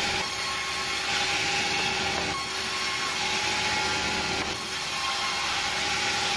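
A band saw whines loudly, cutting through wood.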